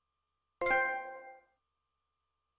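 A bright electronic chime rings out once and quickly fades.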